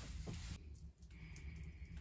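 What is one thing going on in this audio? A wood stove fire crackles softly.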